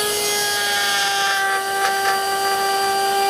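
A saw blade cuts through wood with a brief rasp.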